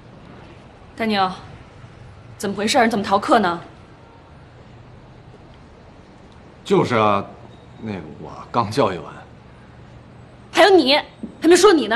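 A young woman speaks sharply, close by.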